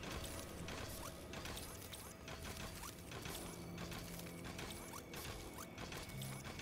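Magic effects whoosh and crackle in quick bursts.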